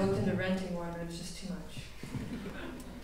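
An orchestra's strings hold a final chord that rings out and fades in an echoing hall.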